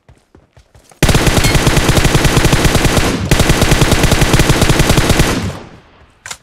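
Automatic rifle fire rattles in rapid bursts in a video game.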